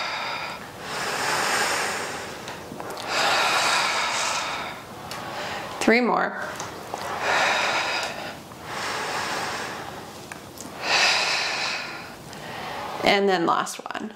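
A woman breathes slowly and deeply in and out.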